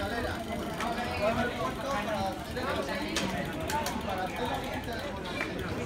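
Bicycle wheels tick as cyclists roll past.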